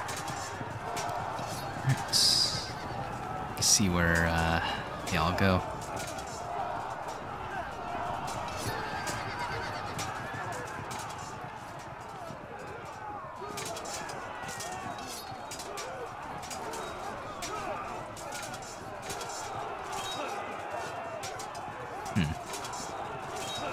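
Muskets crackle in scattered volleys from a distant battle.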